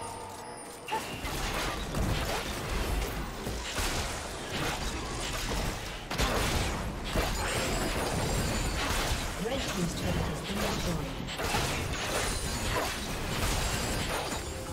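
Magic spells whoosh and crash in rapid bursts during a fight.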